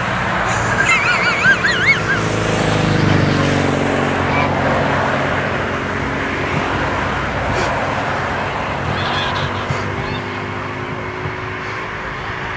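A tractor engine rumbles steadily and fades away.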